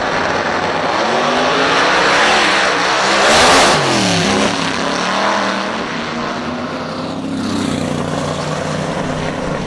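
A drag racing car roars off the line and screams as it speeds away.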